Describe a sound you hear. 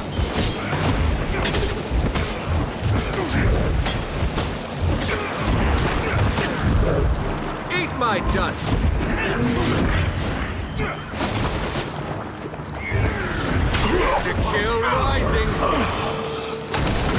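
Blades slash and clang in a fast, busy fight.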